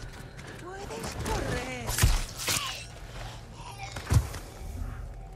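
Heavy blows thud in a struggle.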